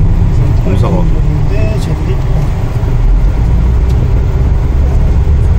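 A vehicle engine rumbles steadily from inside a moving vehicle.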